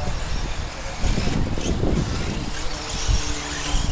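Radio-controlled short course trucks whine as they race on a dirt track.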